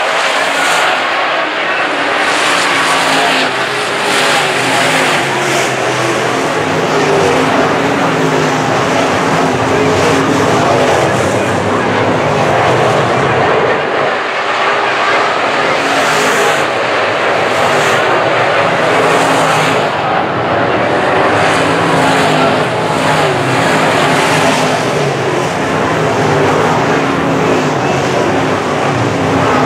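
Engines rev up and down as cars pass close by.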